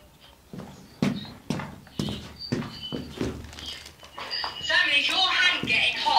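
Footsteps scuff and knock on rock nearby.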